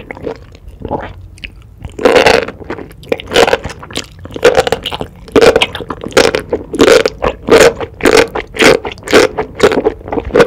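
A woman slurps noodles loudly and wetly, close to a microphone.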